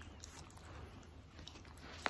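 A small dog nibbles and licks at a hand with soft wet clicks.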